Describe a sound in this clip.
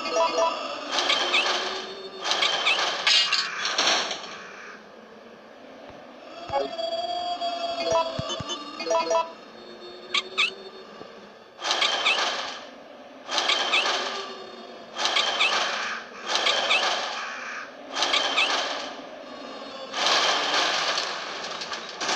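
A metal crank grinds and squeaks as it turns in repeated bursts.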